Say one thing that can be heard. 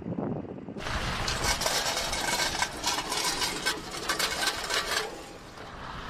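A metal road barrier scrapes and rattles as it is dragged.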